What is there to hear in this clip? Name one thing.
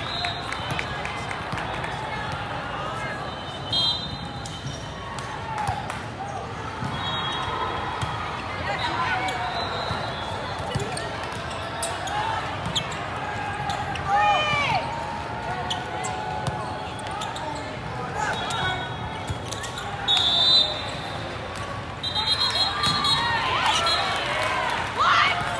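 Sneakers squeak on a sports court.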